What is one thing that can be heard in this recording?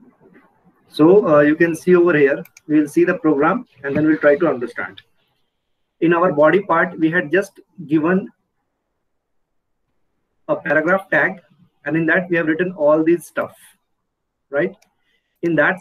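A young man speaks calmly through a microphone, explaining at a steady pace.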